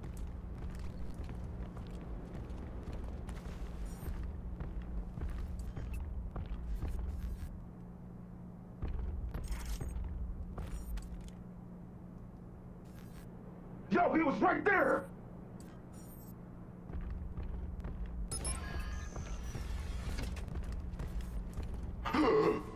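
Soft footsteps shuffle on a hard floor.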